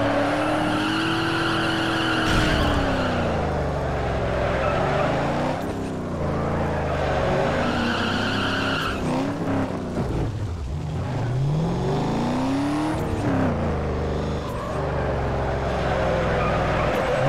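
Tyres screech loudly as a car drifts.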